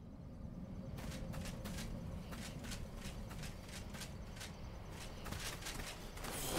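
Footsteps thud steadily over grass.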